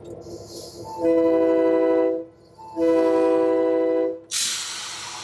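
A locomotive horn sounds two loud blasts.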